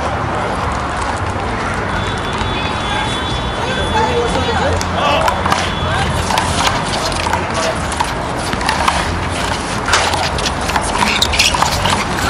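A handball bounces on the ground.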